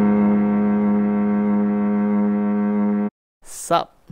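A sustained chord rings steadily, then stops abruptly.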